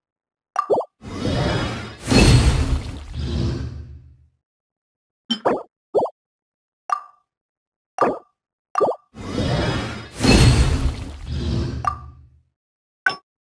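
A crafting effect whooshes and shimmers, then fades.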